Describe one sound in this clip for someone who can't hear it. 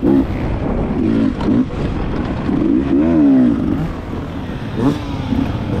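Tyres crunch over dry dirt and gravel.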